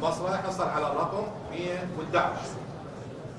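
A man speaks through a microphone in a clear, announcing voice.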